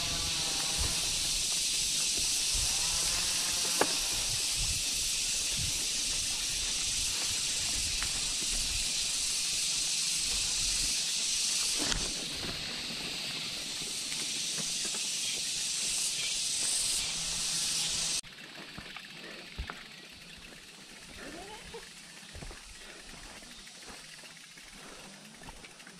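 A bicycle rattles and knocks over bumps.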